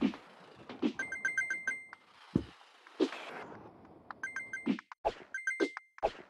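Bright coin chimes ring out in quick runs.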